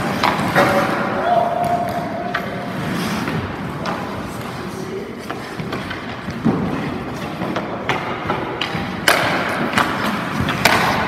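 Ice hockey goalie skates scrape across ice in an echoing indoor rink.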